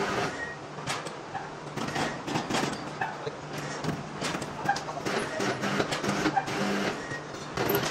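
Metal knocks and clanks.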